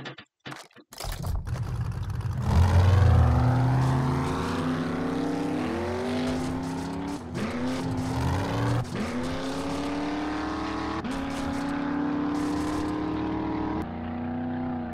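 A vehicle engine starts and drones steadily as it drives, rising and falling in pitch.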